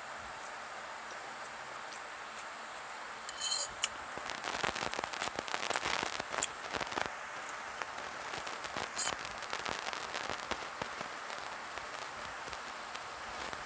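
A young woman chews food with wet, smacking sounds close by.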